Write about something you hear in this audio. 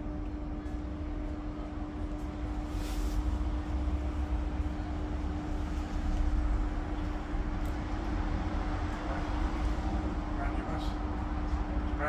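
A steady electrical hum drones inside the bus.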